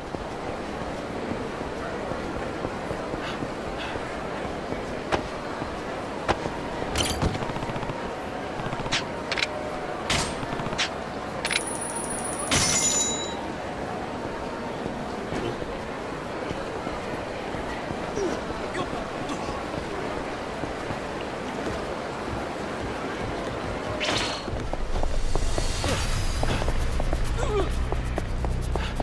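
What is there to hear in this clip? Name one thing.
Footsteps run quickly over pavement.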